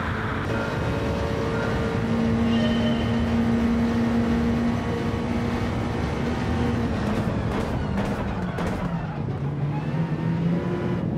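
A racing car engine roars at high speed, then drops in pitch as the car slows.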